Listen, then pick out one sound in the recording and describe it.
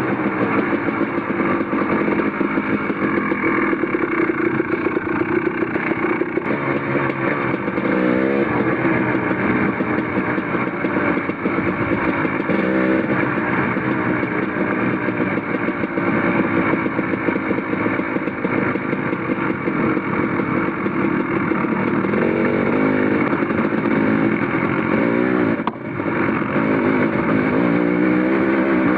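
A dirt bike engine roars close by, revving up and down as it shifts gears.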